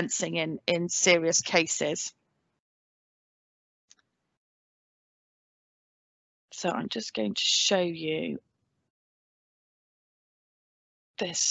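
A woman speaks calmly into a microphone, in short bursts with pauses.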